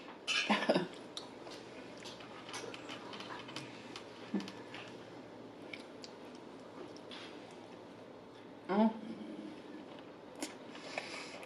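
A young woman chews food noisily and close to a microphone.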